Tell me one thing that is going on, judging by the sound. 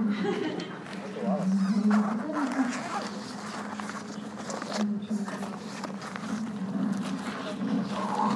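Hanging gear rustles as it is rummaged through.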